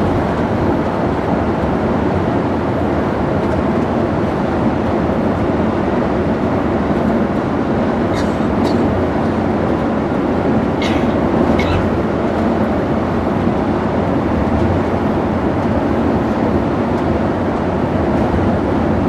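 Tyres roll steadily on smooth tarmac.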